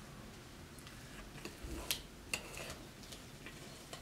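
A plastic scoop scrapes through thick dough in a bowl.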